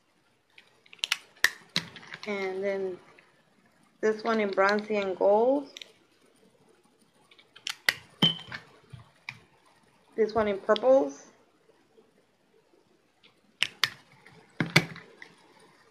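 A plastic case clicks open and shut.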